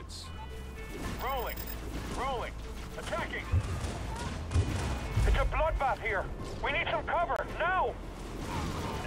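Chirping, warbling electronic tones sound in bursts.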